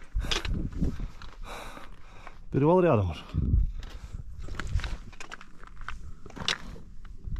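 Footsteps crunch on loose rock.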